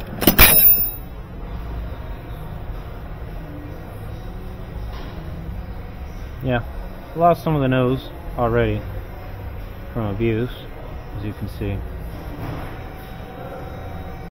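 Metal tools clink and rattle in a drawer.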